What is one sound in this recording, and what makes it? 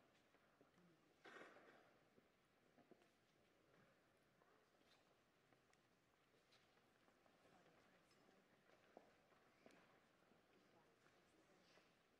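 A congregation murmurs and shuffles in a large echoing hall.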